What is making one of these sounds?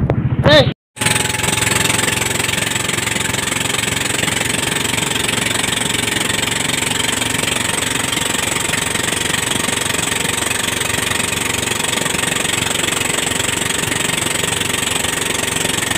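A boat engine drones steadily close by.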